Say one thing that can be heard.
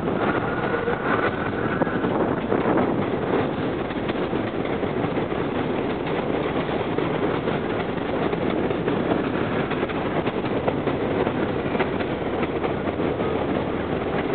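Another train rolls past close by with a loud rushing roar.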